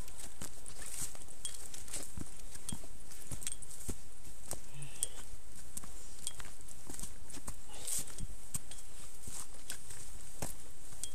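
Footsteps crunch over loose stones and dry leaves on a rocky trail.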